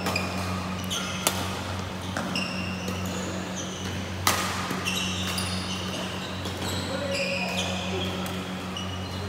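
Rackets smack a shuttlecock back and forth in a large echoing hall.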